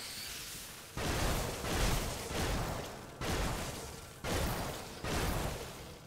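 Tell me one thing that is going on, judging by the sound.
Magic blasts burst with loud whooshing roars, again and again.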